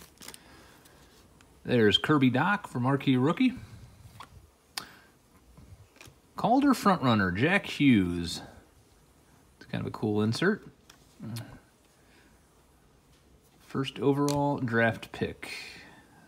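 Trading cards rustle softly as they are shuffled by hand.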